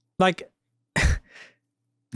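A man laughs into a close microphone.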